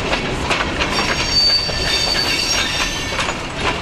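Metal wheels squeal against the rails.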